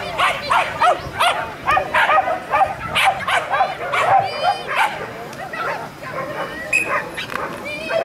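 A small dog yaps rapidly and excitedly nearby.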